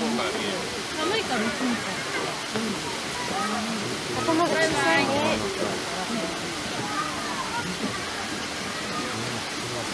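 Shallow water trickles softly over rocks.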